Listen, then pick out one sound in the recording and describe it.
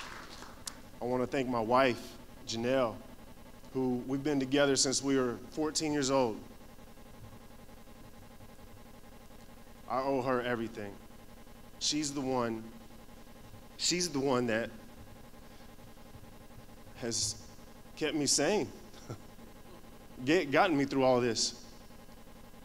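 A young man speaks calmly into a microphone in short phrases with pauses.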